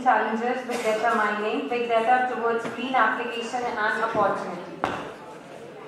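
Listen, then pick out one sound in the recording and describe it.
A young woman speaks into a microphone, heard through loudspeakers.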